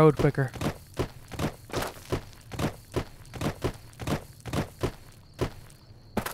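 Footsteps crunch steadily on dry gravel.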